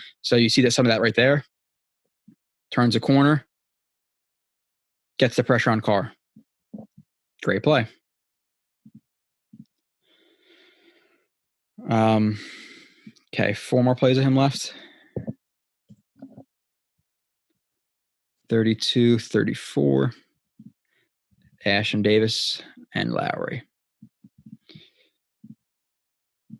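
A young man talks calmly and closely into a microphone, with pauses.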